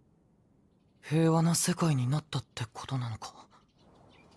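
A young man asks a question calmly, close by.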